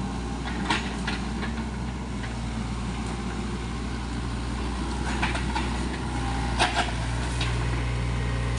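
Branches crack and snap as an excavator bucket pushes through brush.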